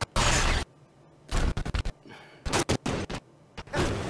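A plasma grenade sizzles and bursts.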